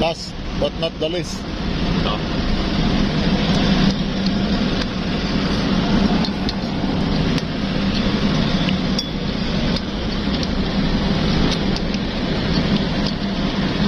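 A ratchet wrench clicks as it tightens a bolt on metal.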